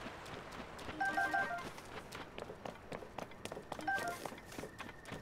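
A short chime rings as an item is picked up.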